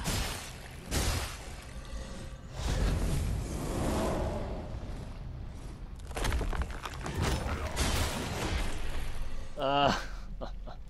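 Blades clash and strike hard in a fight.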